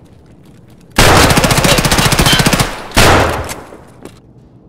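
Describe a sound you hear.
An automatic rifle fires a long rapid burst, echoing loudly.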